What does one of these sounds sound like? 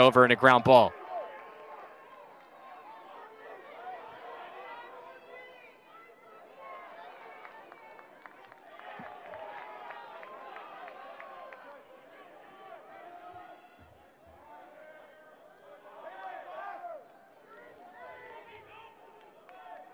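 A crowd of spectators chatters and cheers outdoors at a distance.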